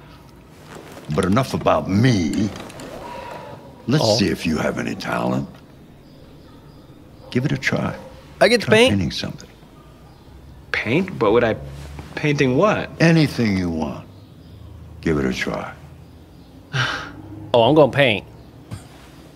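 An elderly man speaks calmly and slowly.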